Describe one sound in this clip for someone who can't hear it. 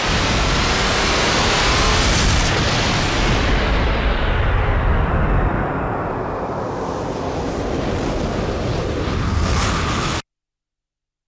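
A huge explosion roars and rumbles, slowly fading.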